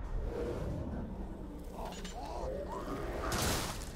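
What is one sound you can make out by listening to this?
A monster growls and snarls.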